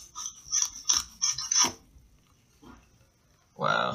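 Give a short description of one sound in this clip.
A knife crunches through a crisp apple.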